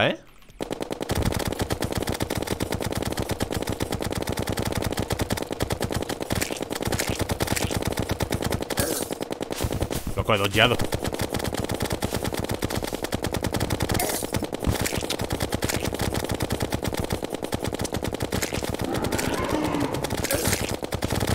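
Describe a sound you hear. Rapid video game attack sounds repeat in quick succession.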